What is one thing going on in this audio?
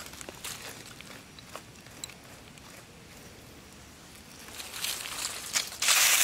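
Hands scrape and brush loose soil.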